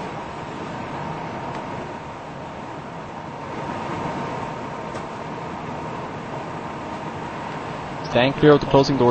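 A subway train rumbles along the tracks and slows to a stop.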